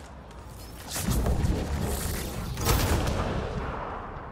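Electric energy blasts burst with a loud boom.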